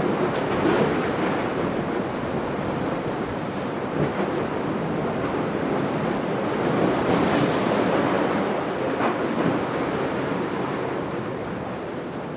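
A motor yacht's engines roar as it speeds across the water.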